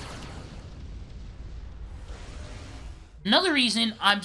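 Electric energy crackles and buzzes.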